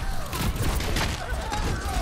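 A video game explosion bursts.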